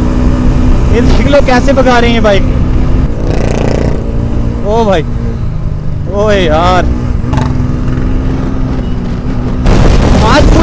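A motorcycle engine revs sharply in short bursts.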